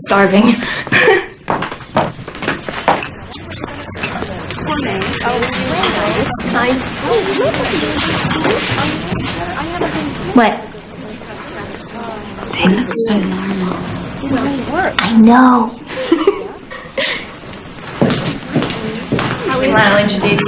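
Women talk calmly nearby.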